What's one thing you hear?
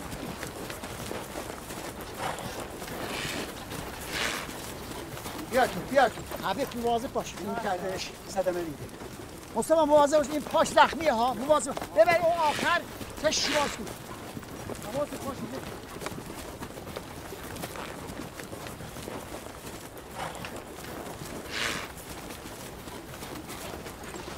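Ostriches flap and scuffle as men wrestle them.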